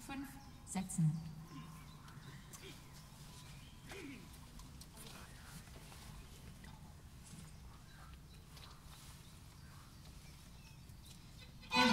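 A small string ensemble plays slow music outdoors.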